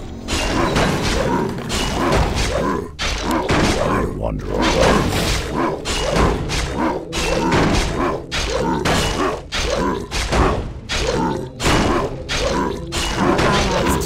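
Blades strike a creature again and again in a fight.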